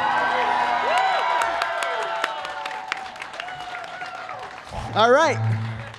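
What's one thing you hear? An audience cheers and claps.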